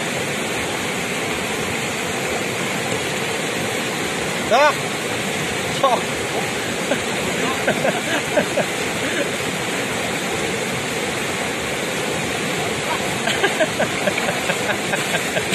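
A fast river rushes and roars steadily.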